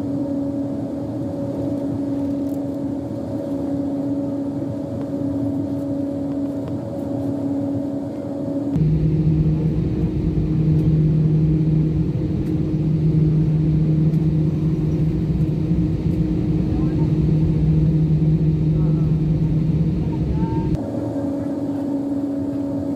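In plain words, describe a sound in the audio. Wheels rumble over the taxiway.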